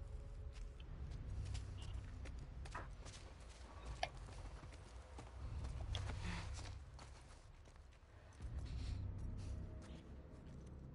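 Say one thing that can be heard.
Footsteps shuffle softly over a gritty floor.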